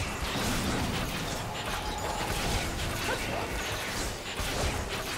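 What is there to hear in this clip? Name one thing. Game weapons strike and clang rapidly.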